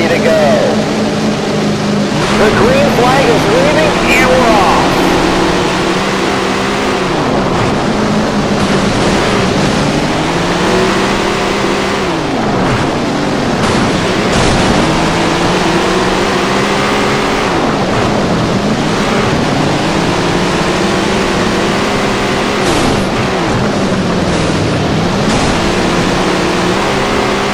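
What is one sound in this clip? A race car engine roars, rising and falling in pitch as it shifts gears.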